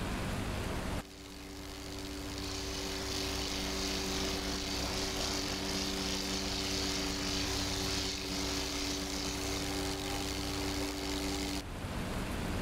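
Wind rushes past a plane as it flies by.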